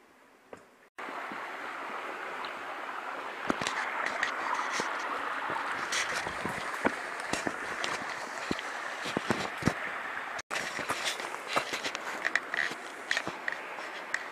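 A stream burbles and splashes over rocks.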